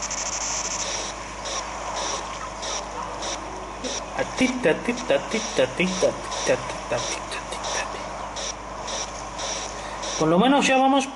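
Video game music plays through a small speaker.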